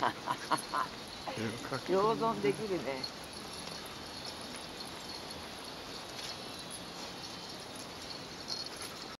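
A dog's claws and footsteps patter on paving stones.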